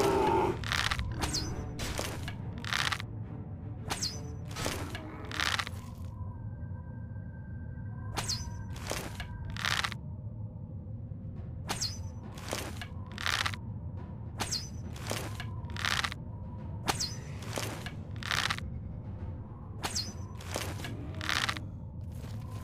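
Footsteps walk steadily across a rocky floor.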